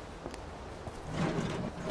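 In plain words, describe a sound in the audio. A metal case clanks as it is picked up.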